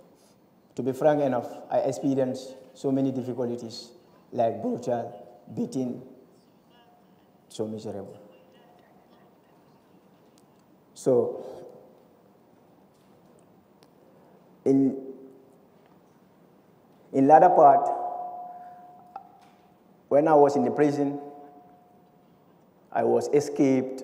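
A young man speaks calmly into a close microphone, with pauses between phrases.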